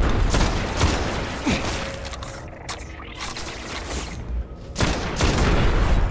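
A gun is reloaded with a metallic clatter.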